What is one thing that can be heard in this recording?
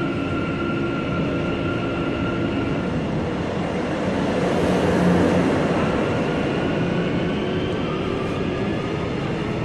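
A subway car rumbles and whines as it runs along the rails.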